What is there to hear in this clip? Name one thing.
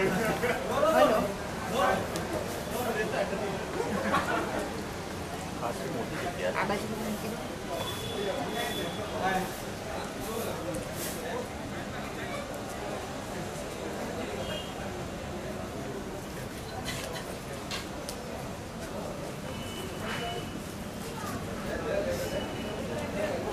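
Adults talk nearby.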